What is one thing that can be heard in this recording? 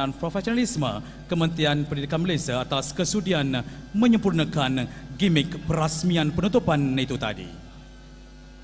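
A man speaks loudly through a loudspeaker in a large hall.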